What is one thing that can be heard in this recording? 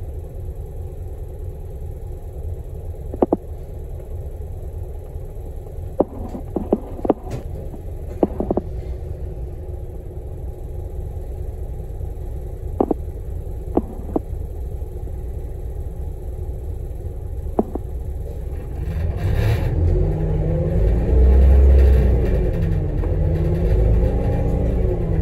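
A vehicle engine rumbles low and steadily from inside, growing louder as the vehicle pulls away.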